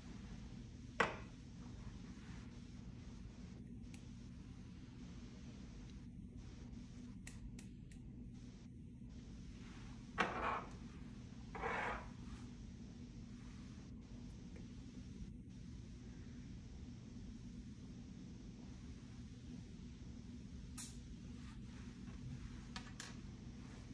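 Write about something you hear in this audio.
Small plastic items click and tap on a countertop.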